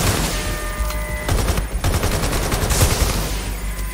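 A drone explodes with a loud boom.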